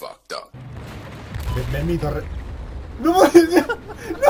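A loud explosion booms with a deep rumble.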